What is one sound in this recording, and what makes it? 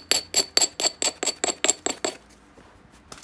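A stone knocks sharply and rapidly against glassy rock.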